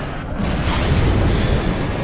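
A laser gun fires with a sharp zap.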